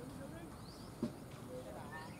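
A cricket bat knocks a ball once with a sharp crack.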